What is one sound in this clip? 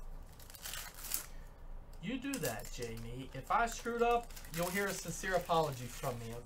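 Foil card packs crinkle as they are torn open.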